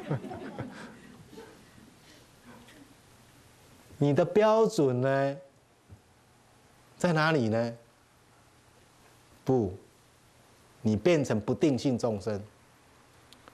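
A man speaks calmly into a microphone, pausing between phrases.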